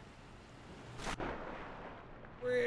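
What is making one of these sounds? Something splashes heavily into water.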